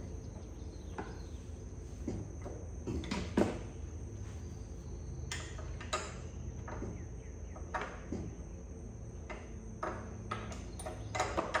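Metal parts clink and knock close by.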